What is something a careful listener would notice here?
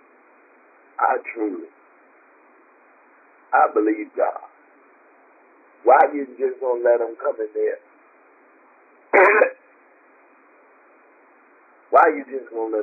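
A woman speaks calmly in short phrases with pauses, heard through a phone line.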